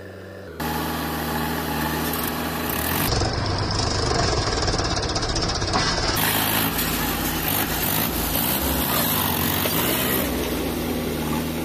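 A tractor engine chugs loudly close by.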